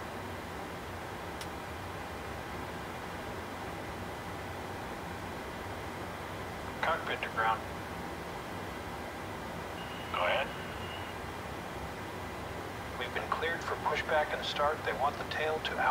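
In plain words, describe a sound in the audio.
A steady low hum of aircraft systems fills a cockpit.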